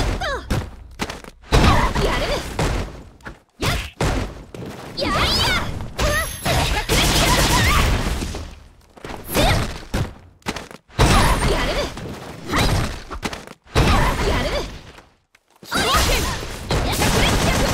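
Punches and kicks land with sharp smacking hits.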